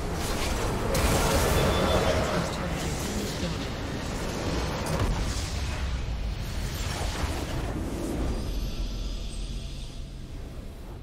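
Loud magical blasts and crashing explosions from a video game battle burst one after another.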